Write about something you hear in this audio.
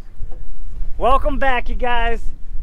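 A young man speaks up close.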